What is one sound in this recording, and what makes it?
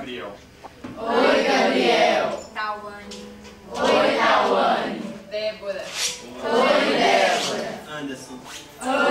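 A young girl speaks loudly and with animation, close by, in a room with some echo.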